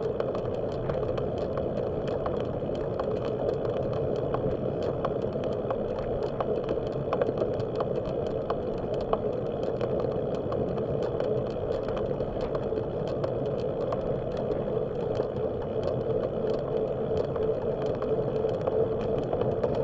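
Bicycle tyres hum and rattle steadily along a paved path.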